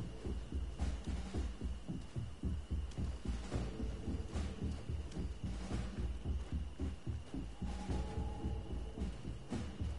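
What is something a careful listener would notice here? Footsteps thud quickly on stony ground.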